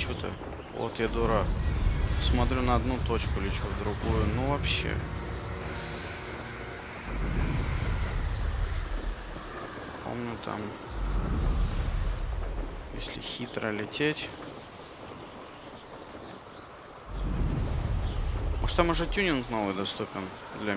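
Wind rushes in gusts past a broom flying fast through the air.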